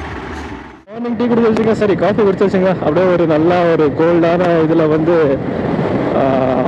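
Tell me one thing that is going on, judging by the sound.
A motorcycle engine runs steadily.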